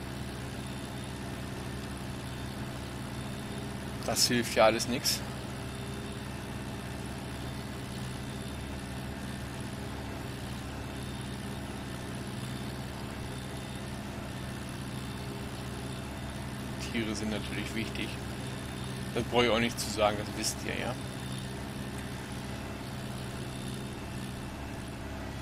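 A tractor engine hums steadily at low speed.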